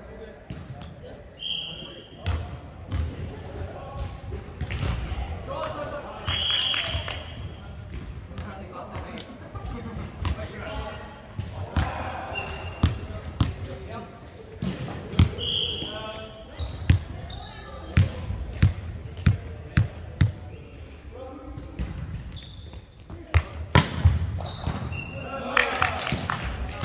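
A volleyball thumps off players' hands and arms, echoing in a large hall.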